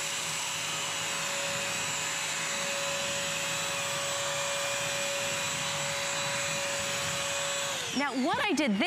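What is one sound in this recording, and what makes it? A vacuum cleaner hums steadily as it cleans a floor.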